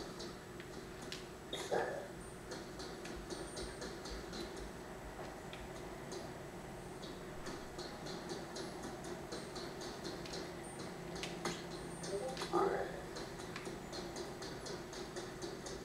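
Rapid video game sound effects click and patter through a television speaker.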